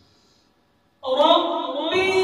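A man recites in a melodic chanting voice through a microphone, echoing in a large hall.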